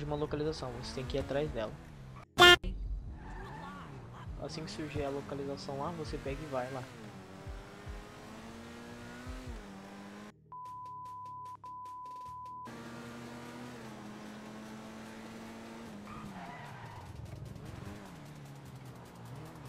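A sports car engine hums and revs steadily.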